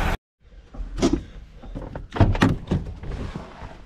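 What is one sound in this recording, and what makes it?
A car door latch clicks and thumps.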